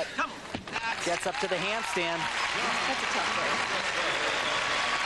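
A large crowd cheers and applauds in a big echoing arena.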